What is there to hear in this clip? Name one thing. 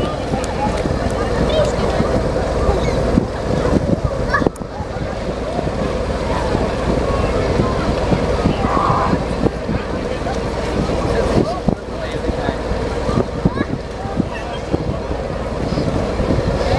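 A crowd of boys and young people shout and chatter outdoors.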